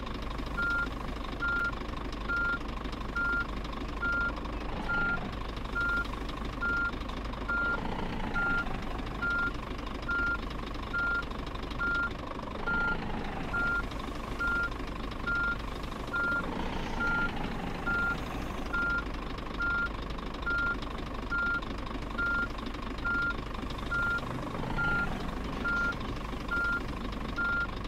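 A truck's reversing alarm beeps.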